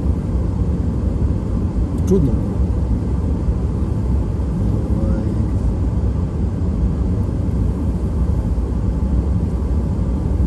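Tyres roll over the road with a low rumble.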